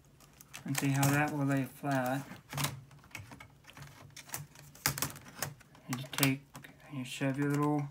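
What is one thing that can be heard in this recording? A laptop keyboard snaps into place with sharp clicks.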